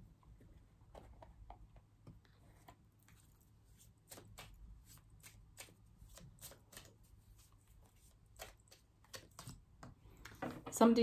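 Cards rustle and click softly in a woman's hands.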